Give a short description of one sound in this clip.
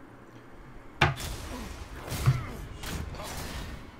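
Heavy blows and metallic clashes ring out in a fight.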